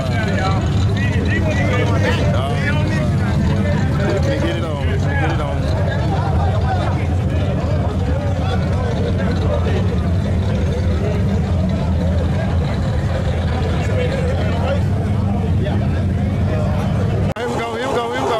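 A crowd of men talk and call out loudly all around outdoors.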